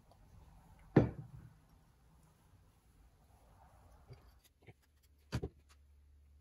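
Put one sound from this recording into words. Metal parts clink together.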